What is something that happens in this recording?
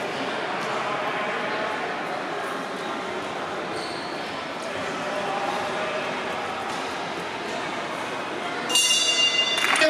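Children's voices chatter and call out in a large echoing hall.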